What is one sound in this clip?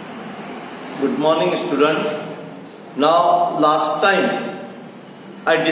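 A middle-aged man speaks calmly and clearly into a nearby microphone, as if teaching.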